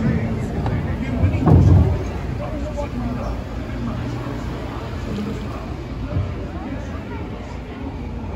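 A mixed group of adults and children chatter quietly close by.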